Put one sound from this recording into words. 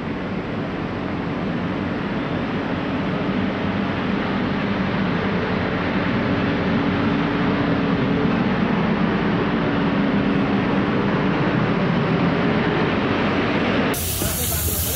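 A road roller's engine rumbles steadily.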